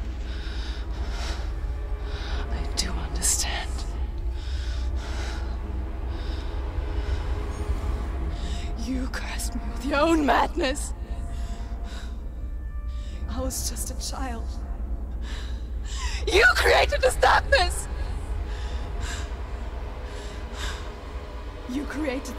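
A young woman speaks tensely and angrily, close by.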